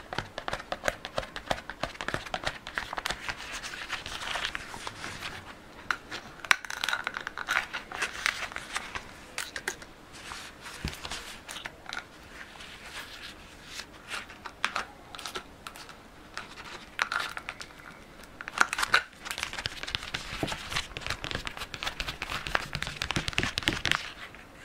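Gloved hands rub and handle a plastic spray bottle.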